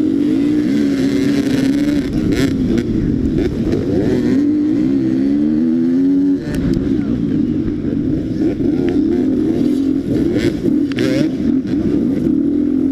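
A dirt bike engine revs loudly close by, rising and falling as it shifts gears.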